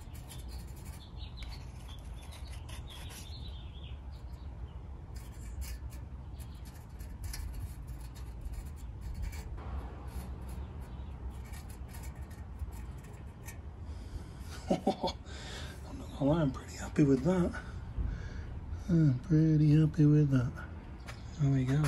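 A metal pick scrapes and taps against a metal pan.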